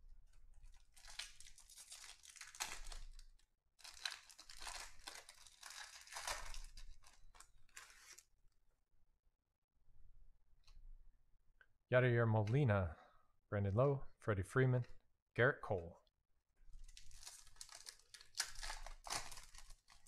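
A foil wrapper crinkles and tears as it is opened.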